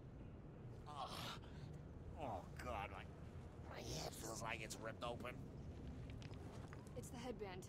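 A man groans and speaks in a strained, pained voice.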